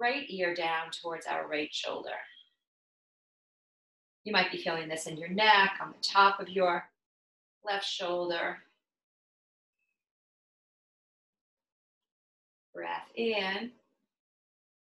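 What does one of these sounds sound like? A woman speaks calmly and softly close to a microphone, with pauses.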